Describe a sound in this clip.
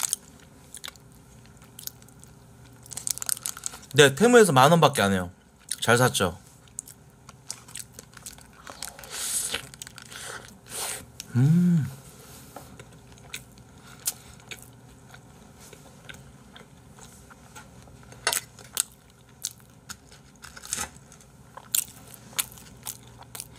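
A young man chews and crunches food close to a microphone.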